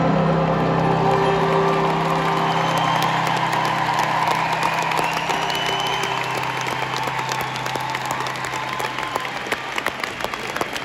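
A crowd cheers and screams loudly in a large echoing arena.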